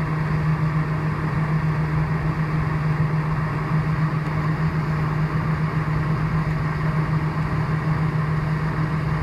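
Aircraft wheels rumble over the taxiway.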